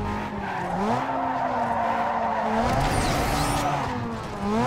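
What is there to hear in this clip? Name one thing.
Tyres screech as a car drifts around a corner.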